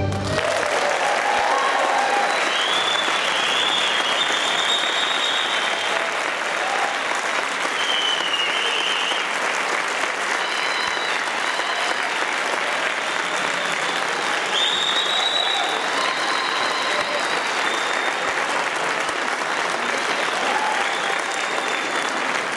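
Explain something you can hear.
A large string orchestra plays with full sound in a large reverberant hall.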